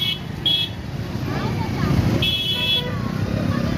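Motorcycles rumble past.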